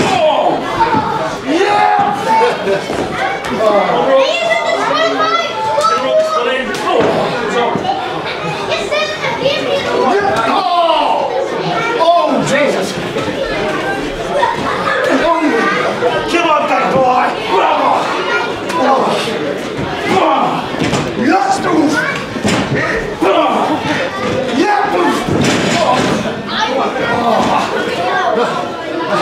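A crowd in an echoing hall shouts and cheers.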